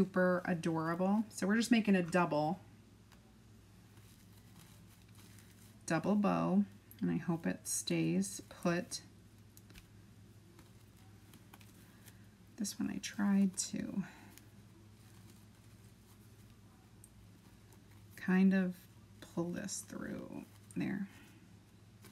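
A middle-aged woman talks calmly close to a microphone, in short bursts.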